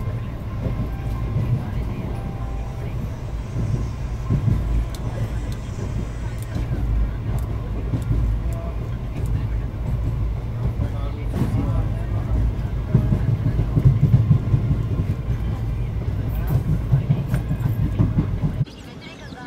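A train rumbles along the tracks with a steady low roar.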